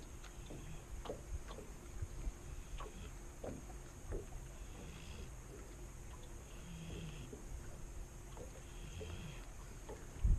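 Water laps and splashes against a small boat's hull.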